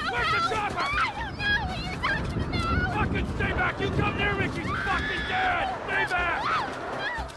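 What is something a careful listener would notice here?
A man shouts angrily and threatens.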